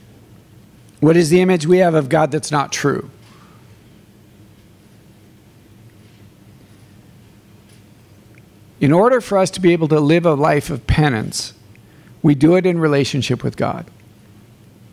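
A middle-aged man speaks calmly through a microphone, with pauses between phrases.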